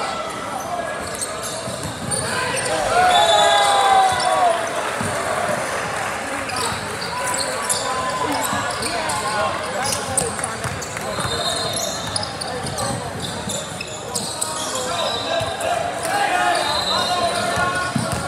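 Spectators talk and call out around a large echoing gym.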